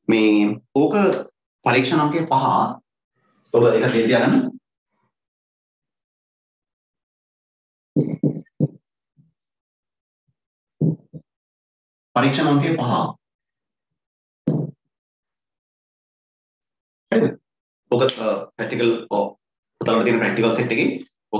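A man speaks clearly into a close microphone, explaining in bursts with pauses.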